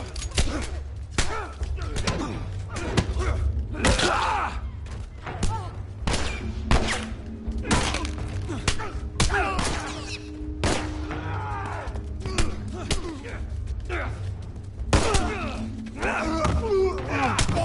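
Punches thud in a fistfight.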